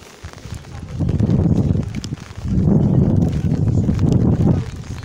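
Strong wind gusts roar against the microphone outdoors.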